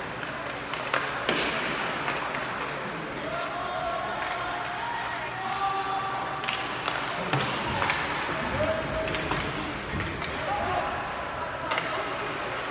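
Hockey sticks clack against a puck in a large echoing arena.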